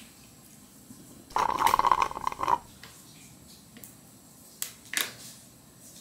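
A young woman gulps water from a plastic bottle.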